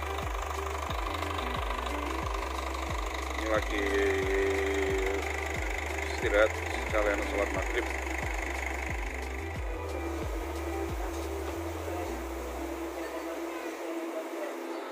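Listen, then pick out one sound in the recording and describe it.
A bus engine idles with a low, pulsing rumble nearby.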